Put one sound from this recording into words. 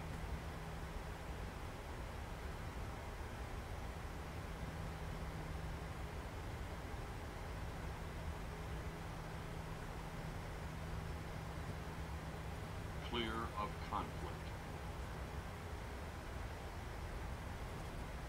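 Jet engines hum with a steady low drone.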